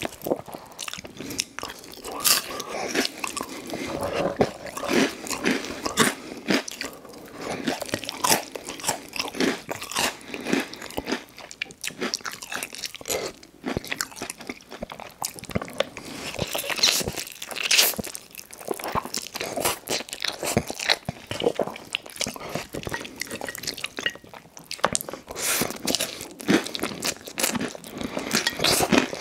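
A man chews wet, sticky food with smacking sounds close to a microphone.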